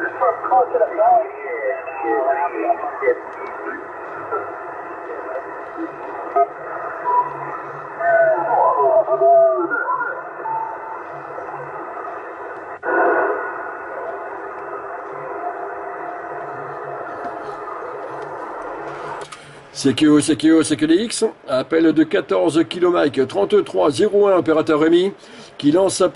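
Voices come through a radio speaker, thin and muffled.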